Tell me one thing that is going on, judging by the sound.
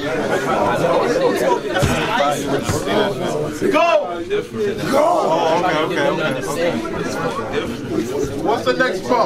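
Several young men talk loudly and excitedly over one another.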